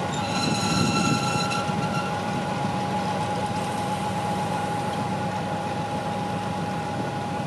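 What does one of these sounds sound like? A freight train rolls slowly along the tracks.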